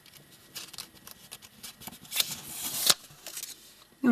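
Paper rustles as a stack of notes is handled.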